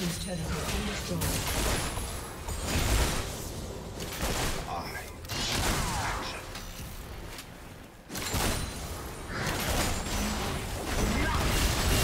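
Game spells whoosh and blast in bursts during a fight.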